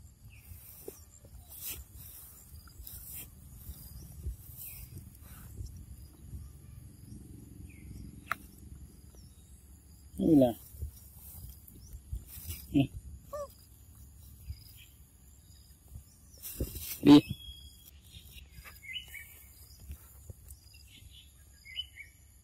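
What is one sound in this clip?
Monkeys munch and chew on fruit close by.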